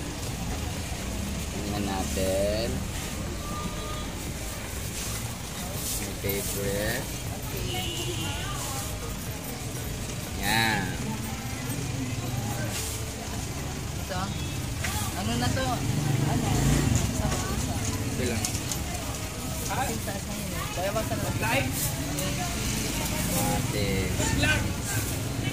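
Several adults chat nearby in a busy, bustling crowd.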